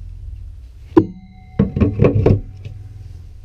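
A wooden floor hatch bangs and knocks into place.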